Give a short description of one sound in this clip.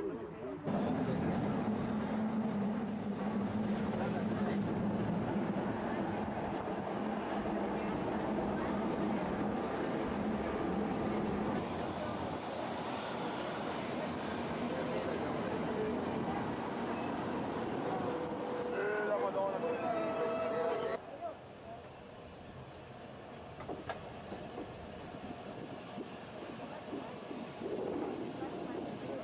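A train rumbles along rails.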